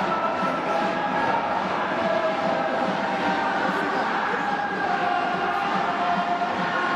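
A large crowd cheers and chants loudly in a big echoing stadium.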